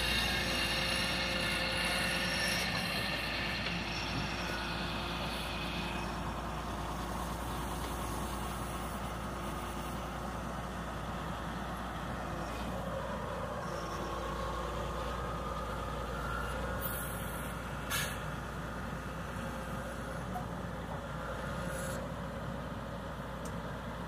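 A grader blade scrapes and pushes dirt and grass.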